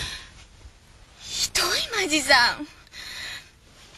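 A young woman speaks pleadingly close by.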